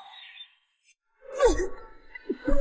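A body thumps onto the ground.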